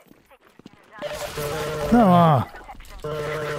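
Gunshots blast in quick bursts.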